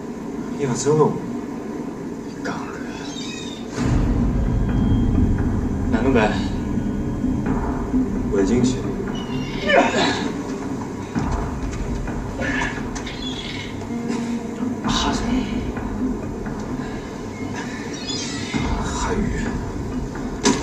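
A man speaks calmly through loudspeakers in a large hall.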